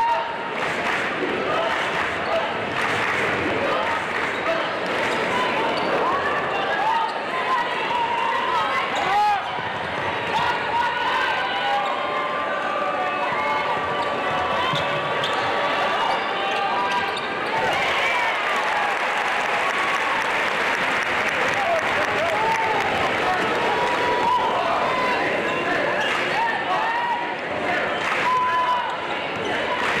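Sneakers squeak sharply on a hardwood court.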